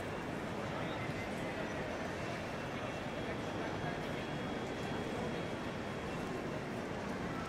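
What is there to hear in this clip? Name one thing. A busy crowd murmurs and echoes in a large hall.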